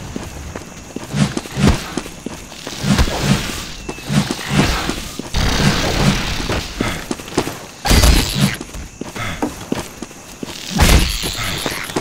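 An axe swings and strikes a giant insect creature with heavy thuds.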